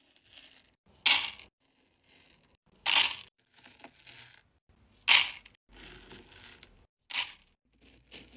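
Wax beads pour from a metal scoop into a pot with a bright rattling clatter.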